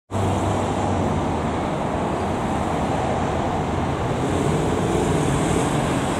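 An elevated train hums as it pulls in on a raised track.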